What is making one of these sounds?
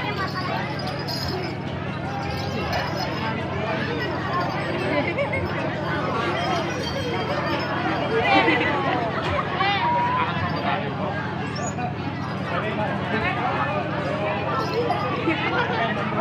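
A crowd of children and adults chatters and calls out close by.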